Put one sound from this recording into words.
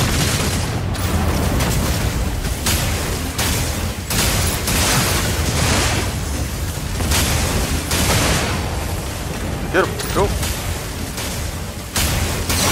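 Laser guns fire in rapid, crackling bursts.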